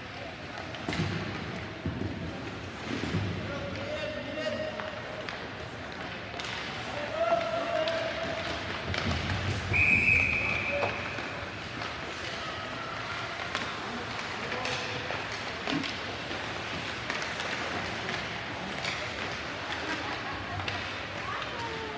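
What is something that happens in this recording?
Hockey pucks clack against sticks and boards.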